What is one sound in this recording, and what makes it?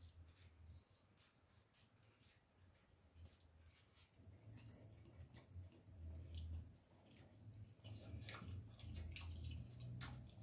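A man chews food noisily up close.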